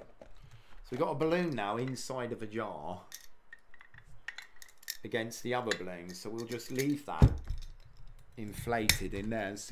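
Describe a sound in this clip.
Glass clinks as a man handles a jar.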